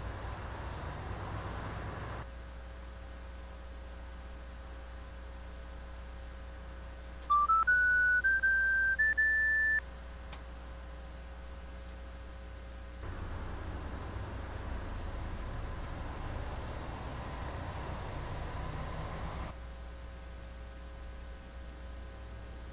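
A bus engine idles with a low, steady hum.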